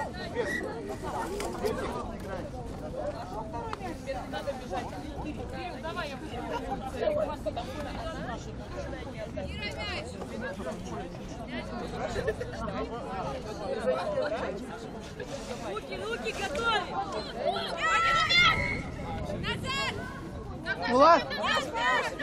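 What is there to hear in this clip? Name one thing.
Young women shout and call to each other outdoors.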